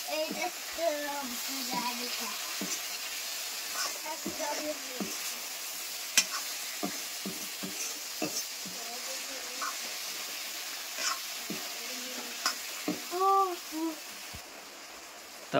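Food sizzles and hisses in a hot pan.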